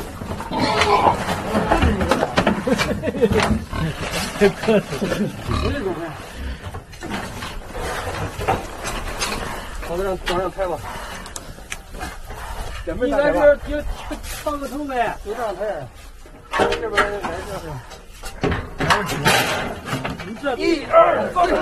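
A pig grunts and squeals.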